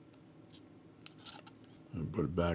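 Scissors snip through a thin wire with a sharp click.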